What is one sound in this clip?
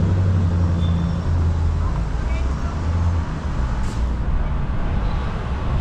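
Wind rumbles and buffets outdoors on a street.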